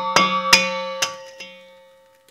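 An egg cracks against the rim of a metal bowl.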